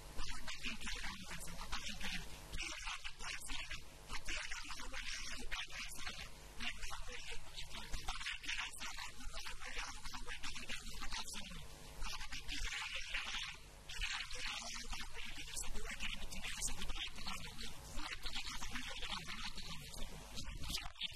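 A man recites loudly and rhythmically into a microphone, heard through loudspeakers in an echoing hall.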